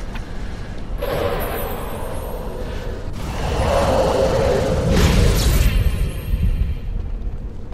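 A magic blast whooshes and crackles loudly.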